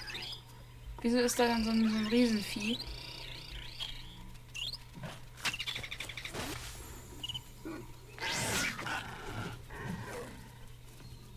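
Game creatures screech and growl as they fight.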